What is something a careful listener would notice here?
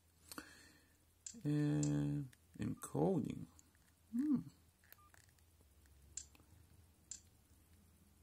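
Keys on a phone keypad click as they are pressed.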